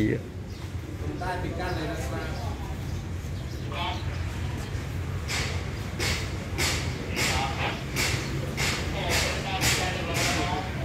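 A man speaks outdoors.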